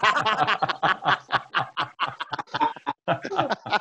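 Several men laugh over an online call.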